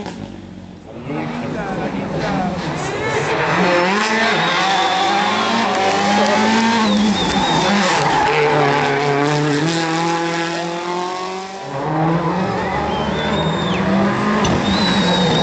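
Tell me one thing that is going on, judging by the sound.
A rally car engine roars and revs hard, rising and falling in pitch as it shifts gears.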